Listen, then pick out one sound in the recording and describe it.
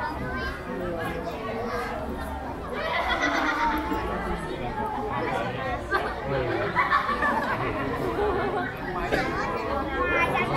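A crowd of onlookers chatter and call out.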